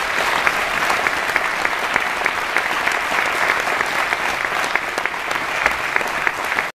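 An acoustic guitar is strummed briskly.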